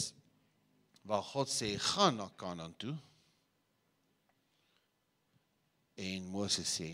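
A middle-aged man speaks with animation into a microphone, heard through loudspeakers in a large room.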